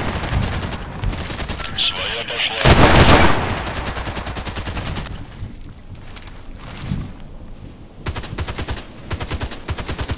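A rifle fires in rapid bursts of shots close by.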